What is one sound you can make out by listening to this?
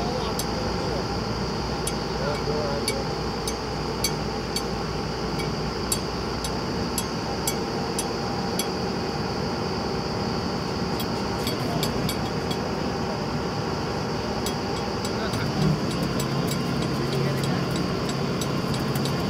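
A drilling rig's engine runs with a steady loud rumble outdoors.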